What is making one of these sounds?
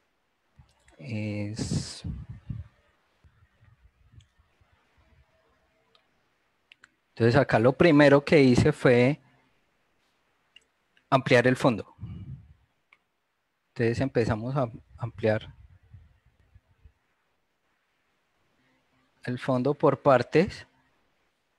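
A man talks calmly over an online call, in short bursts with pauses.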